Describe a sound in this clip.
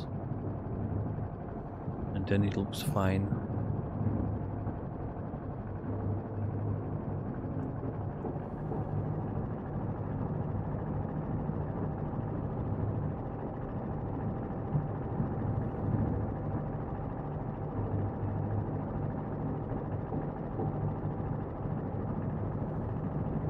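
A large engine hums steadily with a low drone.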